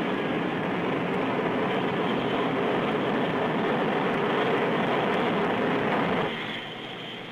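Jet engines roar loudly and steadily.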